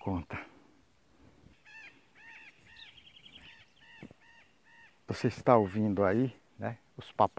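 An elderly man talks calmly, close to a microphone.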